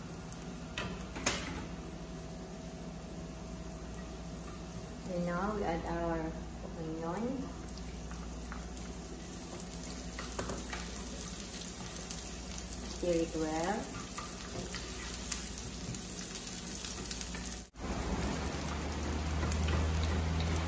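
A wooden spatula scrapes and stirs across a pan.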